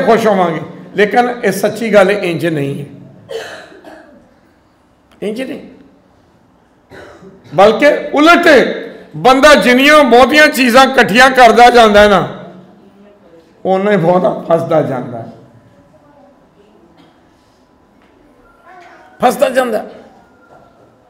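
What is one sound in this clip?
An elderly man preaches with animation into a microphone.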